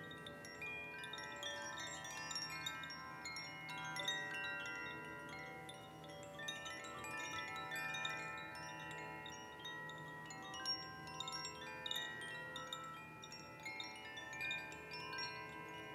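Wind chimes ring and tinkle steadily, heard through an online call.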